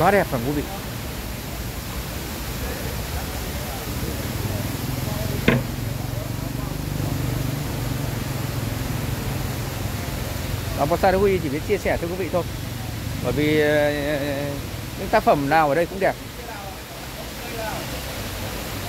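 Fountain water splashes and pours steadily nearby.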